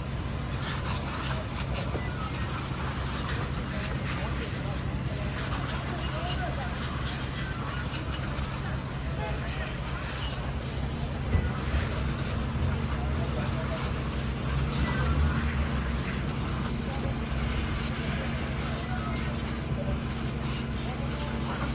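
A bus burns with a steady roar and crackle of flames.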